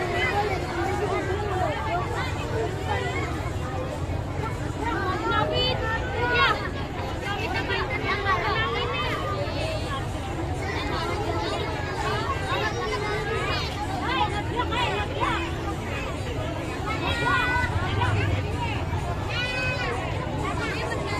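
A traditional ensemble plays loud music through loudspeakers outdoors.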